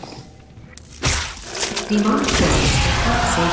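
Flesh tears and squelches wetly.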